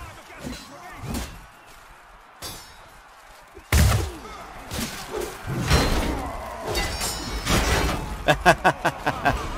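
Swords clash and clang with metallic strikes.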